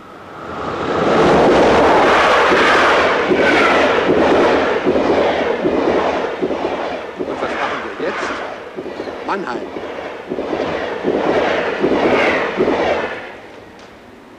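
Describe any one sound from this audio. A train rumbles and clatters past loudly, then fades.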